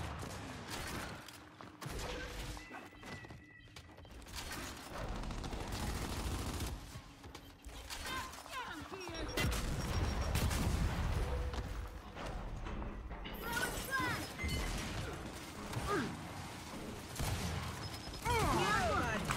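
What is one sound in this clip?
Heavy footsteps thud as a soldier runs.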